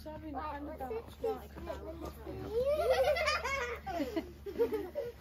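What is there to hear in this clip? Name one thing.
A young child talks in a high voice nearby, outdoors.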